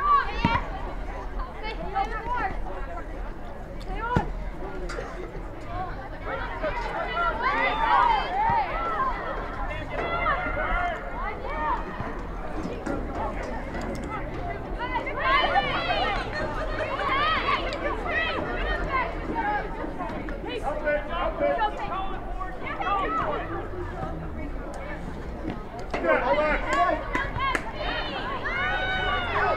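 A crowd of spectators chatters and cheers from a distance.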